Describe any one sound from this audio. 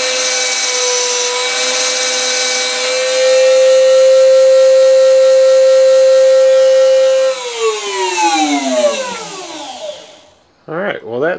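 A small rotary tool whines at high speed, then slowly winds down.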